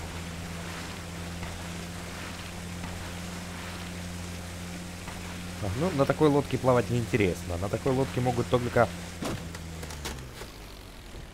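A boat's outboard motor hums steadily, then cuts out.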